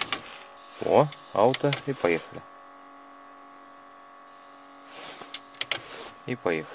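Buttons on a car radio click.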